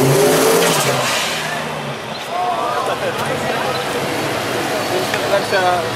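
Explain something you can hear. A car engine revs loudly as a car drives past.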